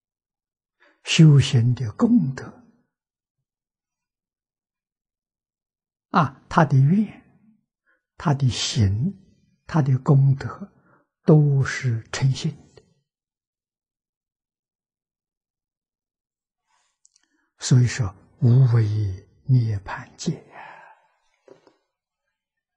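An elderly man speaks calmly and slowly into a close microphone, pausing between phrases.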